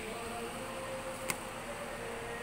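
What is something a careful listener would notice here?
Plastic packets rustle as a hand picks them up.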